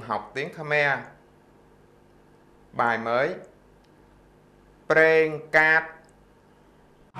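A middle-aged man speaks calmly into a microphone, close by, in short phrases.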